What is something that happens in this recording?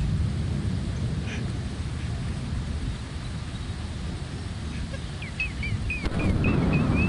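Heavy rain pours down outdoors in a gusty wind.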